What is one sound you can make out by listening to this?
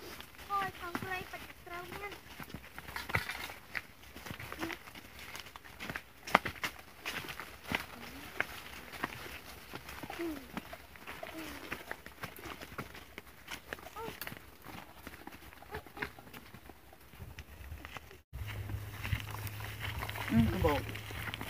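Children call out and talk nearby.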